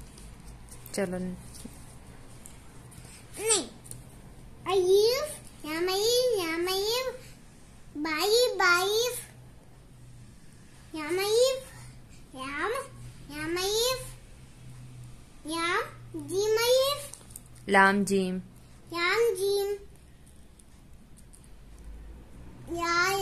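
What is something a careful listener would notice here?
A young boy recites aloud in a sing-song voice, close by.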